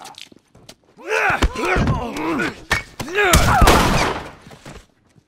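Heavy blows thud in a close scuffle.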